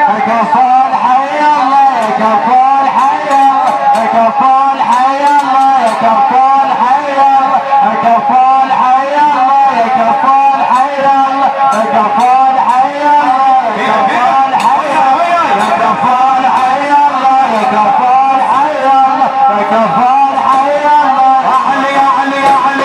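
A large crowd of men chants together loudly outdoors.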